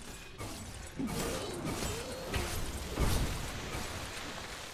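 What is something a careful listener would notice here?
Magic spells crackle and burst during a fantasy battle.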